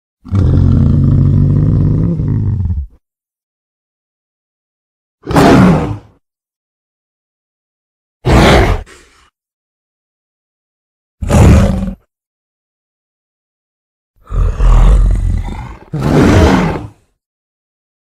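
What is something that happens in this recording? A gorilla roars and grunts in short, loud bursts.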